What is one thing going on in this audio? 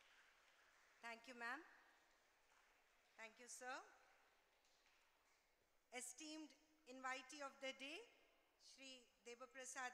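A young woman speaks calmly into a microphone over loudspeakers in a large hall.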